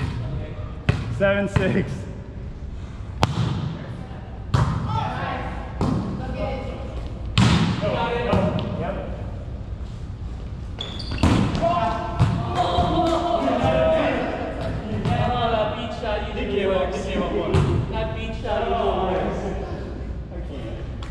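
Men call out and talk to each other across the court.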